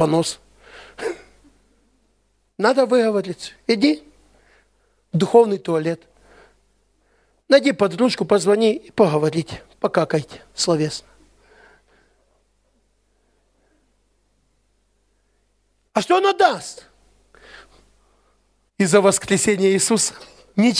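A man speaks with animation through a headset microphone, in bursts with long pauses.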